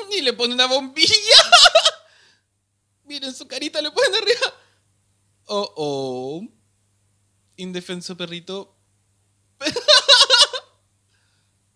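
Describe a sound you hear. A young man laughs close into a microphone.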